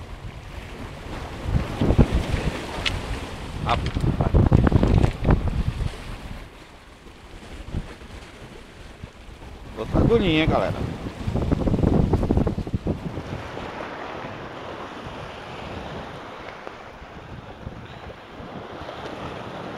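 Waves wash and splash against rocks nearby.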